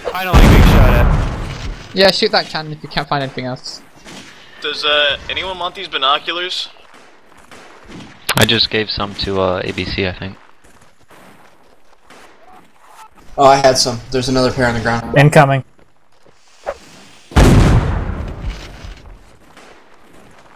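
A cannon fires with a loud boom that rolls away.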